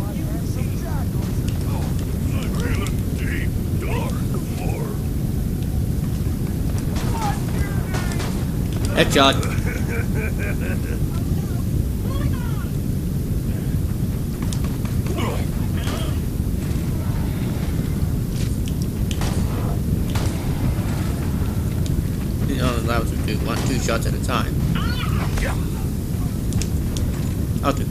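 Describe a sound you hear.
A young man talks into a close headset microphone.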